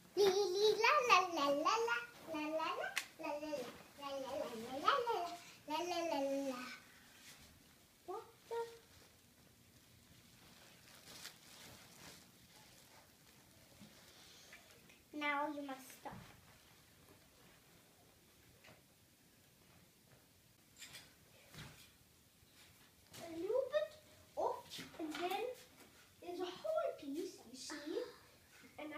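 A young girl sings in a high voice close by.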